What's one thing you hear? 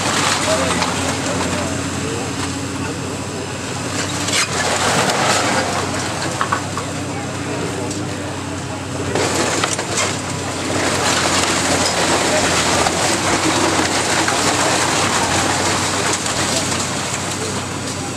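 A water hose sprays with a steady hiss.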